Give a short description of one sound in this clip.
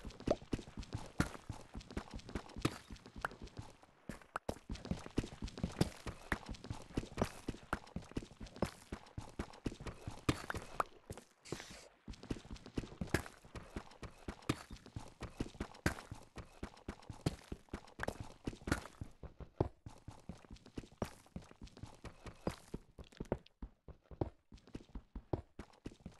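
A pickaxe chips rapidly at stone, with blocks cracking and crumbling.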